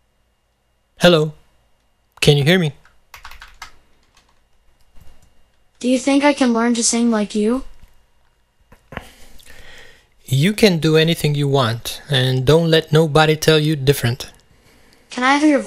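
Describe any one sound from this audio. A man speaks close by in short phrases.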